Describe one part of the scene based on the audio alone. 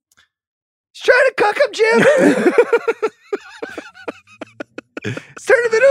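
A middle-aged man laughs heartily.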